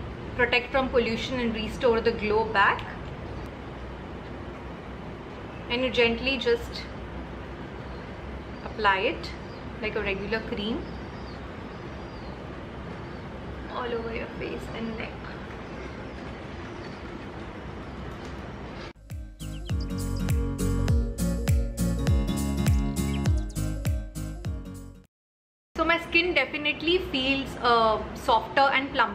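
A young woman talks calmly and close up, with pauses.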